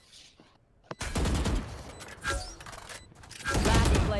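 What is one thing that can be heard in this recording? Rapid rifle shots ring out.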